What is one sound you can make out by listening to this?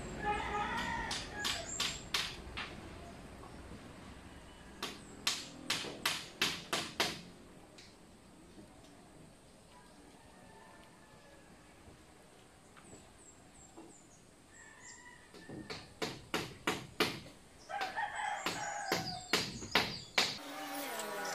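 Sharp knocks ring out on bamboo poles in quick runs.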